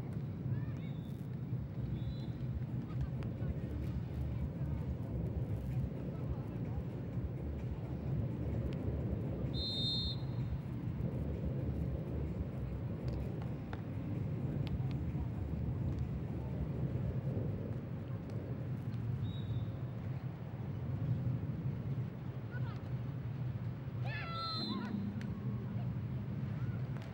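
A crowd murmurs steadily in the distance outdoors.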